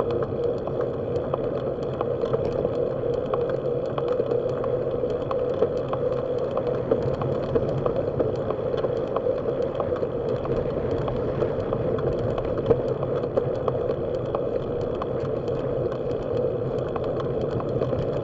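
Wind rushes steadily past while riding along a road.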